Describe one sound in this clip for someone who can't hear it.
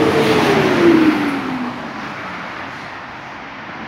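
Footsteps tap on a paved sidewalk.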